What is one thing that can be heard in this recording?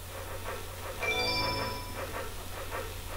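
A bright electronic chime rings out briefly.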